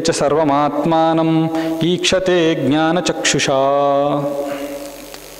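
A man chants in a long, drawn-out voice into a microphone.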